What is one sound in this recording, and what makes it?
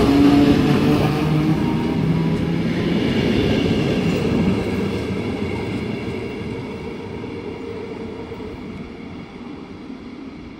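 A train rumbles away along the tracks, its wheels squealing and fading into the distance.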